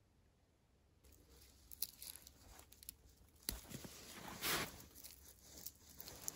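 Dry branches rustle and crackle close by as a hand picks berries.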